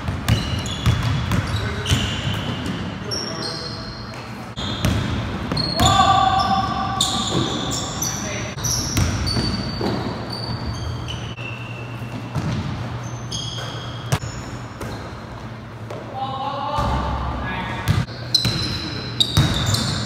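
Sneakers squeak sharply on a hard floor in an echoing gym.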